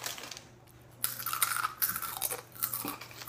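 Teenage boys crunch on chips.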